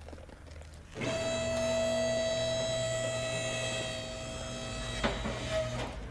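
An electric car lift hums as it lowers.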